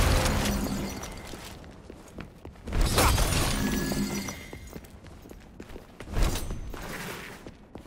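A sword slashes with sharp swishes and impacts.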